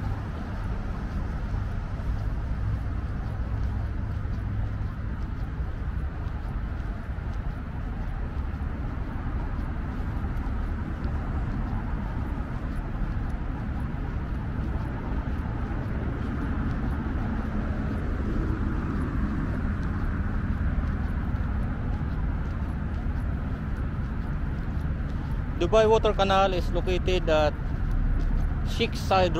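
A car drives along a road with a low, steady rumble.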